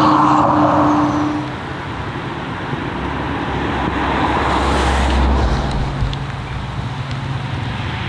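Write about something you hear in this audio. A turbocharged inline-six sports car approaches at speed, its engine roaring.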